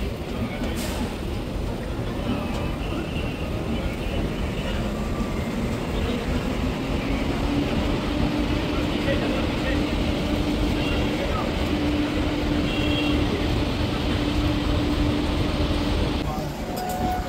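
A train rumbles and clatters along the rails close by.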